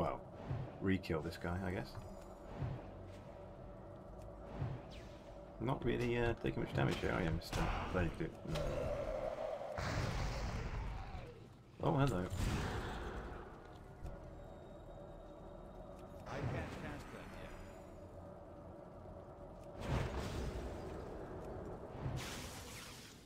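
Magic spells whoosh and burst in short blasts.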